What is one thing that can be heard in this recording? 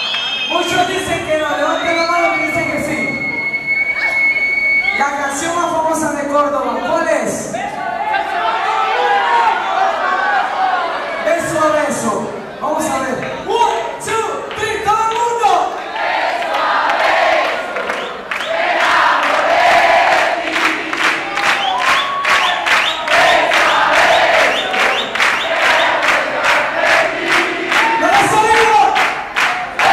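A crowd sings along and cheers.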